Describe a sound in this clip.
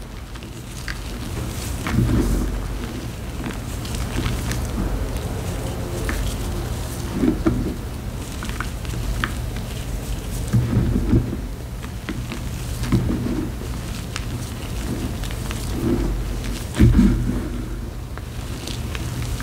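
Loose powder trickles and patters down onto a pile.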